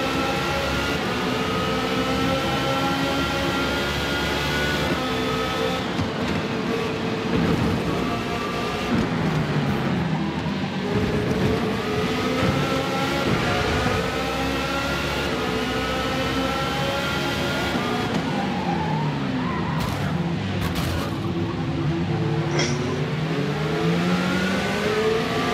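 A racing car engine roars loudly, its pitch rising and falling as it shifts gears.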